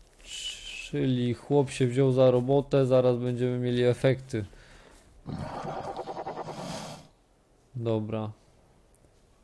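A reptile-like creature lets out high, throaty calls.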